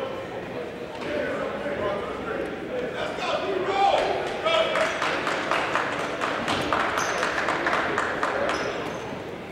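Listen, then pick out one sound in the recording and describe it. Young men shout together as a team.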